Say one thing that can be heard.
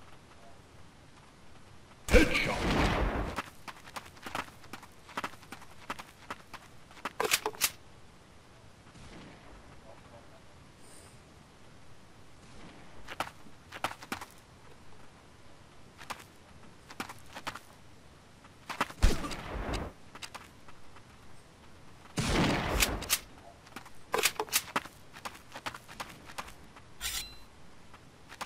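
Footsteps thud and clank on wooden floors and ladders.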